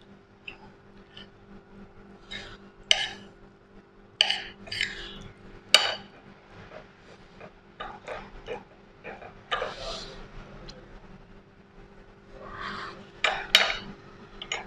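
A metal spoon scrapes and clinks against a plate.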